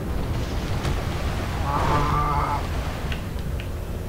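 Rockets launch in a rapid whooshing volley.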